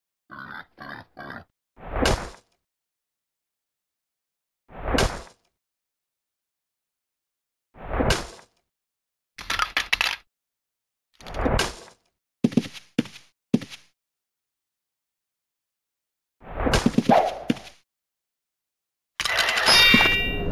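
Blows and magic effects burst out in short bursts as a fight goes on.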